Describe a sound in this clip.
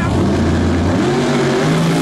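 A drag racing engine revs up loudly as the car launches.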